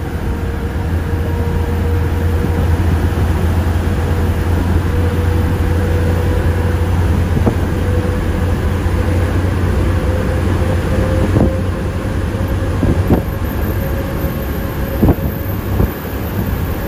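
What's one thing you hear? Tyres roar on the road inside a moving car.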